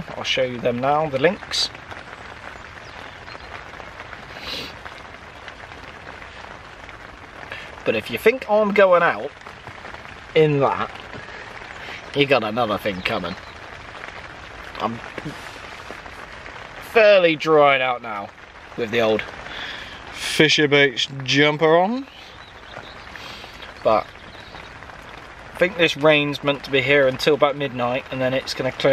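A man talks calmly, close to the microphone.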